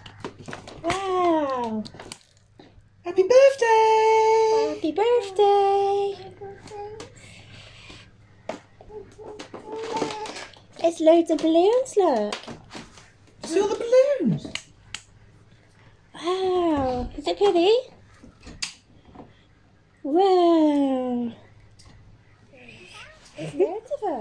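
A young child babbles and squeals in high, singsong bursts nearby.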